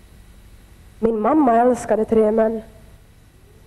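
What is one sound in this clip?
A young woman speaks with feeling through a headset microphone in a large hall.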